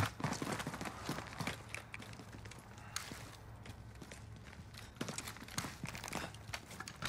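Game footsteps thud down concrete stairs.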